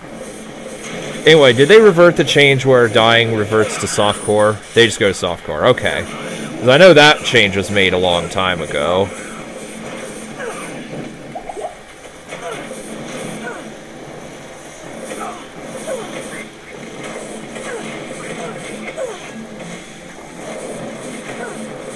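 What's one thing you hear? Magic spells crackle and burst in a game.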